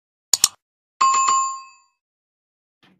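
A small bell chimes and rings out.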